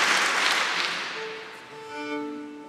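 A violin plays in a reverberant room.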